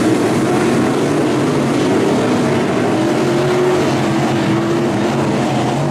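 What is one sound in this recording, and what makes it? Several race car engines roar loudly, their pitch rising and falling.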